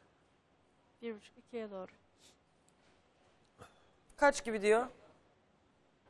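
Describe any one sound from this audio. An older woman speaks in short bursts into a microphone.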